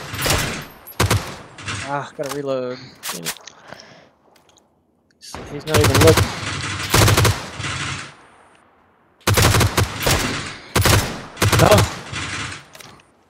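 A rifle fires sharp, loud shots in bursts.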